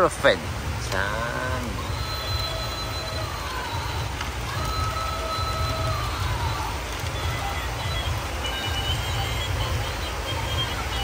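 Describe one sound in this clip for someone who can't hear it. A battery-powered toy whirs and beeps with electronic tones.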